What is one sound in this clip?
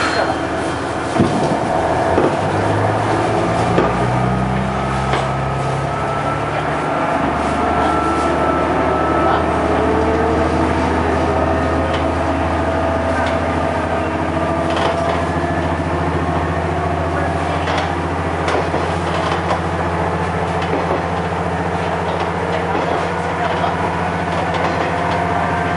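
Train wheels clack and rattle over the rails.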